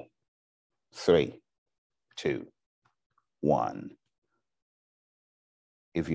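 A man speaks calmly into a microphone in short phrases with pauses.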